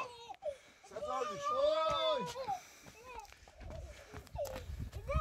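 A young man shouts playfully.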